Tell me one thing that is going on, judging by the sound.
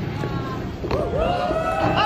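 A basketball thuds against a backboard.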